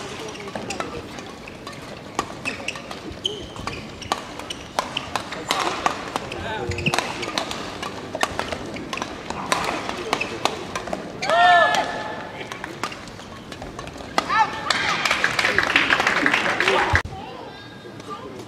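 Shuttlecocks are struck with rackets in a sharp, quick rally.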